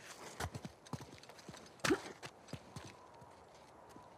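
Footsteps crunch over loose rocks.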